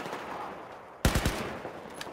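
A single loud gunshot cracks.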